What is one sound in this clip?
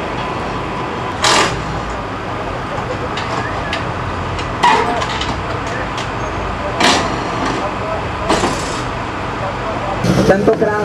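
Mechanics clatter and knock while working on a car.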